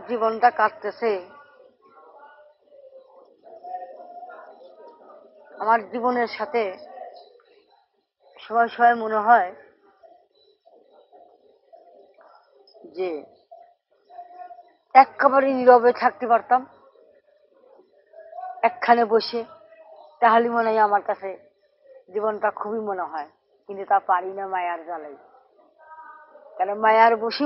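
A middle-aged woman speaks emotionally, close by.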